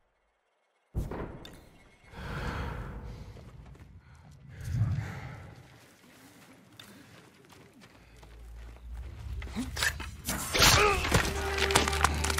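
Soft footsteps creep over earth and wooden planks.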